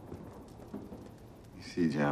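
A man speaks quietly in a low voice.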